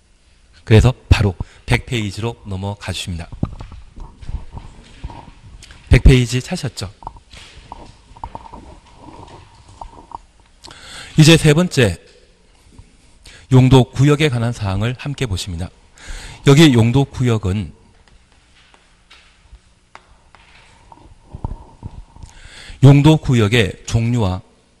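A middle-aged man lectures with animation through a microphone.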